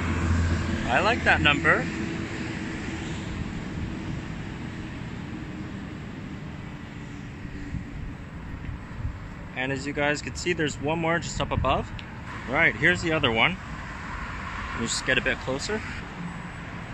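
A young man talks casually, close to the microphone.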